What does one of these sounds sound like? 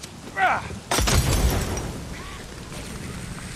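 A firebomb shatters and flames whoosh up loudly.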